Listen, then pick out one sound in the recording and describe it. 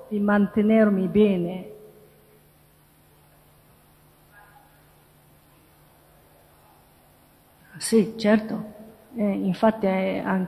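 A woman speaks calmly into a microphone, heard through a loudspeaker in a large hall.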